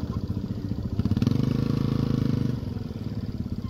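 A dirt bike engine revs up and pulls away.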